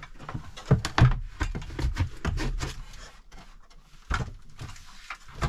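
A metal tool scrapes against wood.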